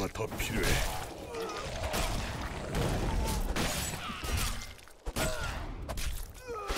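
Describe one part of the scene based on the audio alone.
Weapons strike and clash in a fast fight.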